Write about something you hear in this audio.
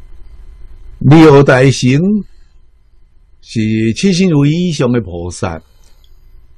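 An elderly man speaks calmly and warmly into a close microphone, in short phrases.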